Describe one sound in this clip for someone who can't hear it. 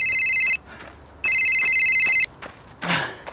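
A phone rings in short bursts.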